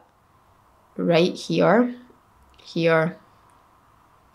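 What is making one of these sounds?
A young woman speaks briefly and calmly close to a microphone.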